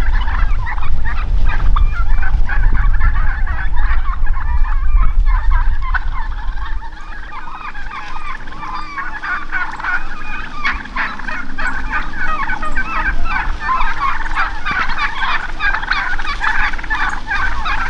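Wind rumbles and rustles the leaves of nearby branches.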